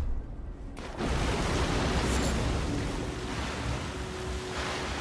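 Footsteps splash and wade through shallow liquid.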